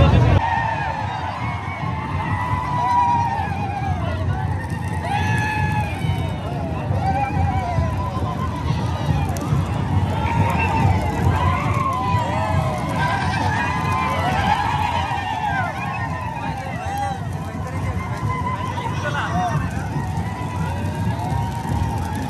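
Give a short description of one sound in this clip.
A large crowd of men shouts and cheers loudly outdoors.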